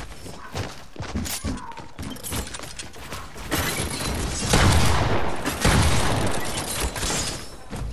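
Building pieces snap into place with quick clattering knocks.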